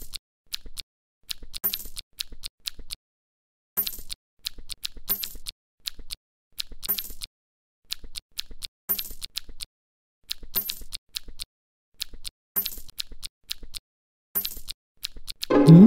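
Short cartoon chomping and popping sound effects repeat quickly as food is caught.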